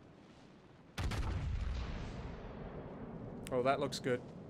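Heavy ship guns fire a loud, booming salvo that rumbles away.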